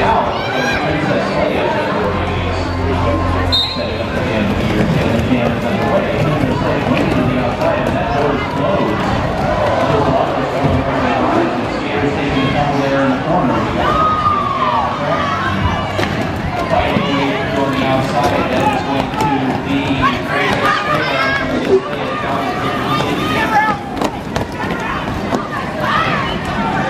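Roller skate wheels rumble and roll across the track.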